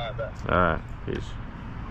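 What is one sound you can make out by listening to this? A metal detector gives a short warbling beep.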